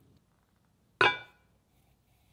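A metal part clunks down onto a metal chuck.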